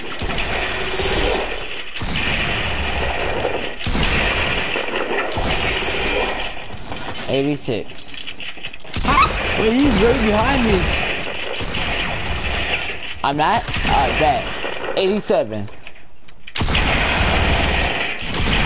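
Building pieces clatter and thud into place in a video game.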